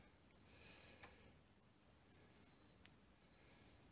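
A metal plate clinks softly as it is handled.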